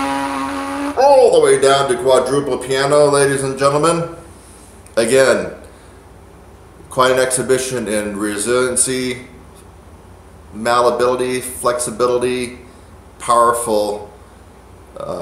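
A man talks calmly, close by, in short bursts with pauses.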